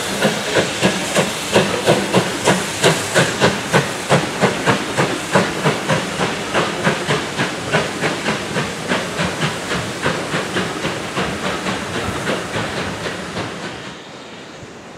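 Train carriages rumble and clatter over a bridge.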